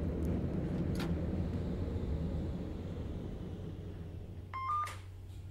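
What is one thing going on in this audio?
A tram's electric motor hums steadily and fades.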